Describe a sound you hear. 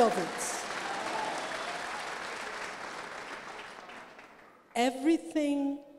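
An elderly woman speaks with animation through a microphone.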